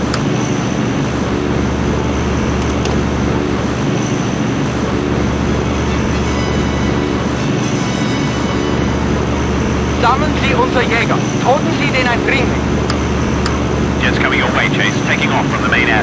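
Aircraft engines drone steadily.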